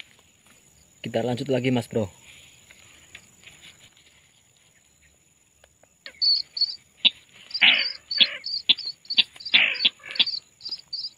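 A bird calls loudly and repeatedly close by.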